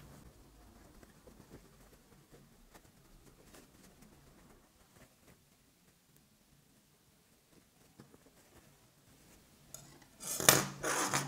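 Fabric rustles softly as hands fold and tuck it.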